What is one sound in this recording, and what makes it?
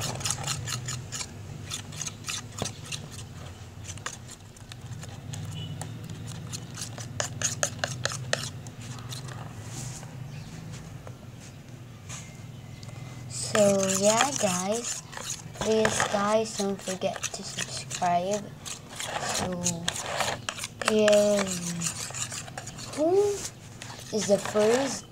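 A metal spoon scrapes and clinks against a bowl.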